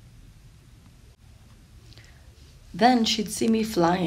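A paper page turns.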